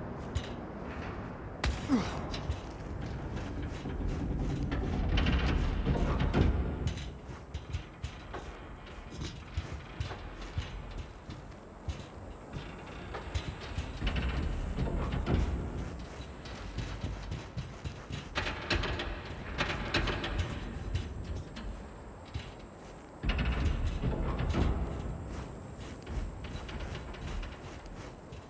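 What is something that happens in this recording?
Footsteps clang on metal grating and stairs.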